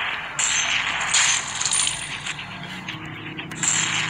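A blade hacks with wet, splattering slashes.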